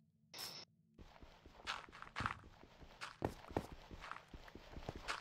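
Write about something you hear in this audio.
Blocks of dirt are dug out with quick, crunching knocks.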